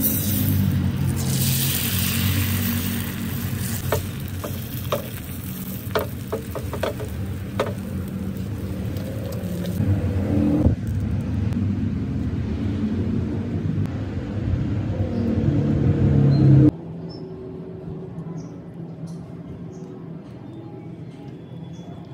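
Eggs sizzle in a hot pan.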